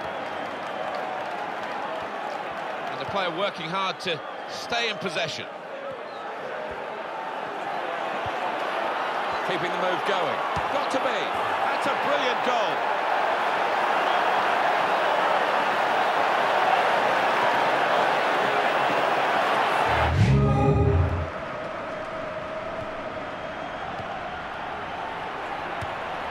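A stadium crowd roars steadily, swelling louder and then dropping away.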